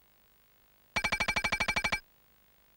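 Rapid electronic beeps tick quickly as a bonus score counts up.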